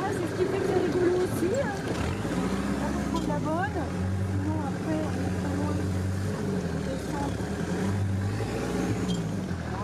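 An open off-road vehicle's engine rumbles and whines as it drives.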